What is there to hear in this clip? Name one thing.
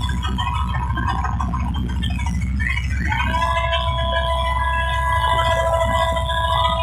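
Loud dance music with a heavy, thumping bass booms from large loudspeakers outdoors.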